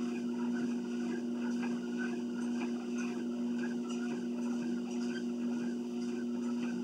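Footsteps thud on a treadmill belt.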